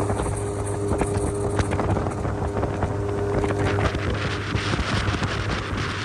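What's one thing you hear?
Spray hisses behind a boat.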